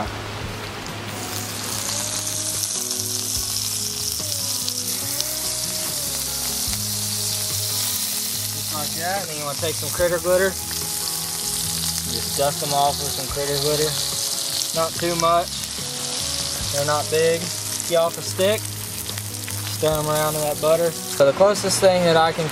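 Water bubbles and sizzles hard in a hot pan.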